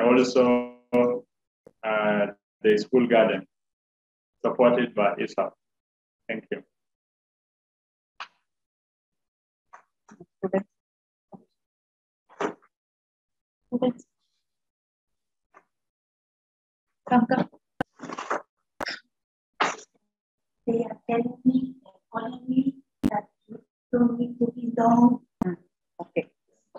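An elderly woman speaks calmly over an online call, in short bursts with pauses.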